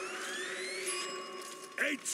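A rising, tinkling chime plays as a weapon box opens.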